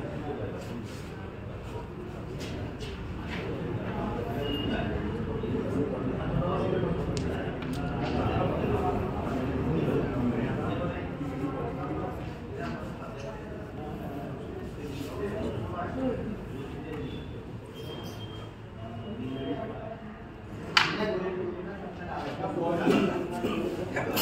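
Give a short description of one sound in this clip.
A crowd of men murmurs and chats nearby.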